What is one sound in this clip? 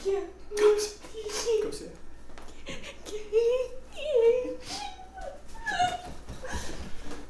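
A young woman sobs and wails loudly close by.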